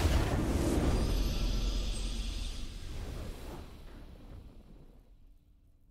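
A triumphant game fanfare plays and fades out.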